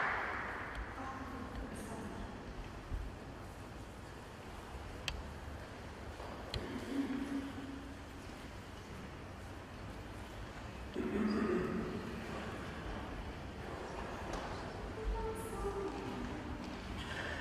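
A mixed choir sings softly in an echoing hall.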